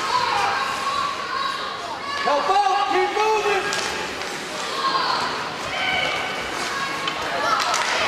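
Ice skates scrape and carve across an ice rink.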